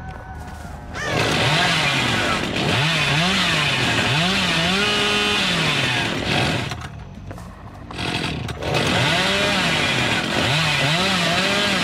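A chainsaw revs loudly, its engine rising and falling in pitch.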